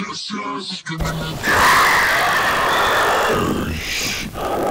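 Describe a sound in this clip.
Rocket thrusters roar loudly.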